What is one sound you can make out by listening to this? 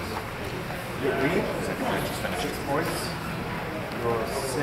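Men talk in the background of a large echoing room.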